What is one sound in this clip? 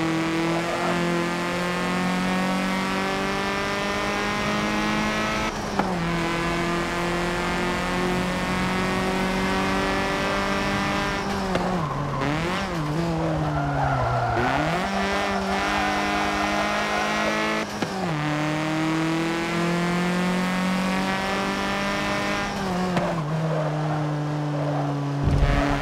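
A racing car engine roars loudly, climbing through the gears and shifting with sudden drops in pitch.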